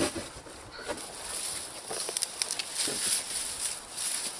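Dry grass rustles and crackles as a man pulls at it.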